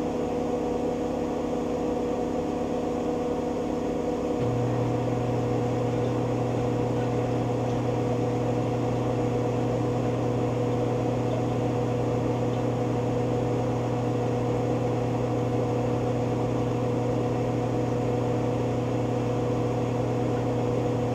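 A washing machine drum spins fast with a steady hum.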